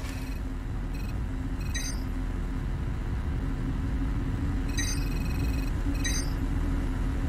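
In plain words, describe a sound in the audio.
Short electronic blips sound from a game menu.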